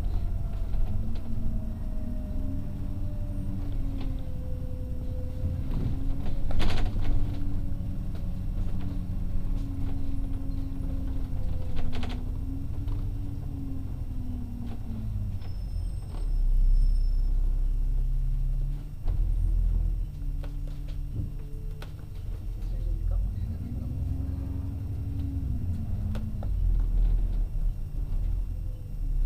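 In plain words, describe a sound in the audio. A bus engine hums and whines steadily, rising and falling in pitch.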